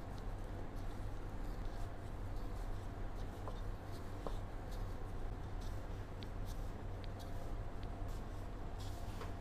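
Gloved hands squish and rustle through floury chicken.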